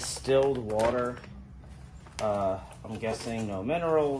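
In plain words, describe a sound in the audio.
A paper bag of powder rustles and crinkles.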